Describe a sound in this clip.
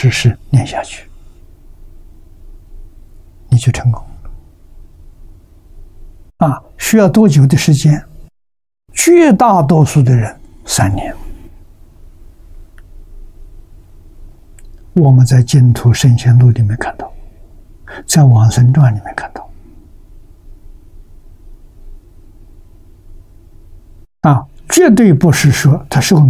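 An elderly man speaks calmly into a close microphone, with pauses.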